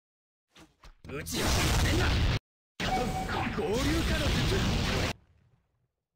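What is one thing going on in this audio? Battle sound effects clash and crackle loudly.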